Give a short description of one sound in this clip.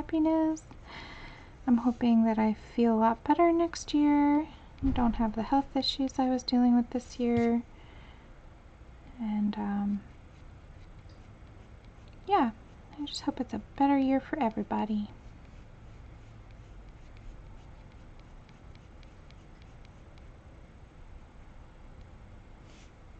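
A pen scratches lightly on paper.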